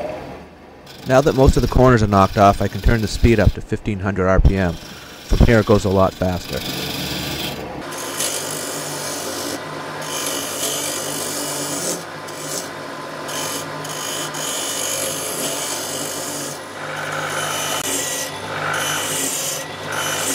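A chisel scrapes and shaves spinning wood.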